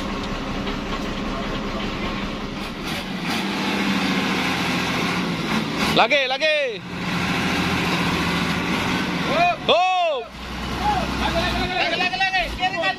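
A truck engine roars and strains as its wheels spin in mud.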